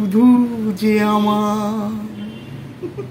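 A man speaks in a playful, sing-song voice.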